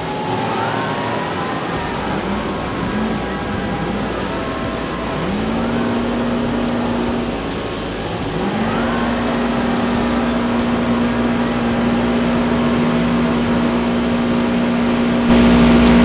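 Car engines roar and rev.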